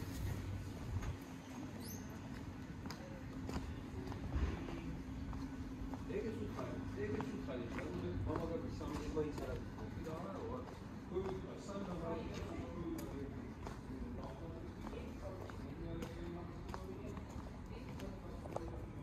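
Footsteps tap on cobblestones at a steady walking pace.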